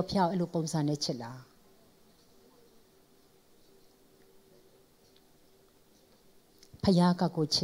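A young woman speaks calmly through a microphone, pausing between phrases.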